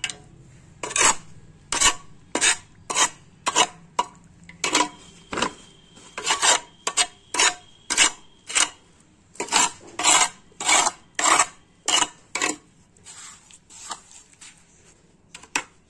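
A trowel scrapes and slaps wet cement in quick, repeated strokes.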